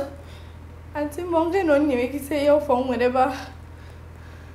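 A young woman pleads softly.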